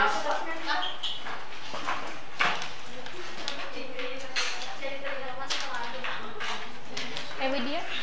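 Several young women chatter at once in a room with a slight echo.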